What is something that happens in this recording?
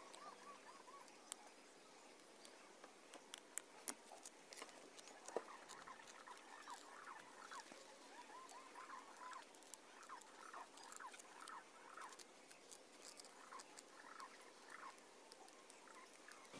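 Small twigs snap and crackle.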